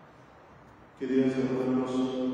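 A man chants in a sustained voice through a microphone.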